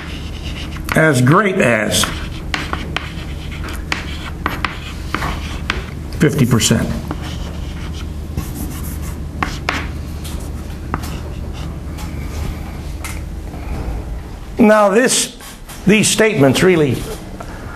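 An elderly man speaks in a lecture voice.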